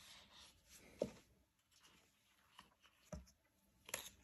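Cardboard taps softly on a table.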